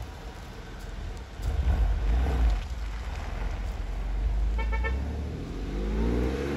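A car engine rumbles deeply as the car pulls away.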